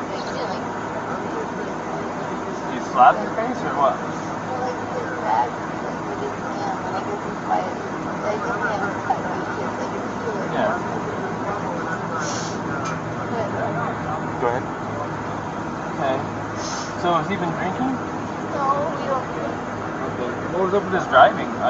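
A young woman answers quietly from close by.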